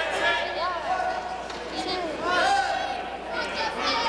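A man shouts nearby in an echoing hall.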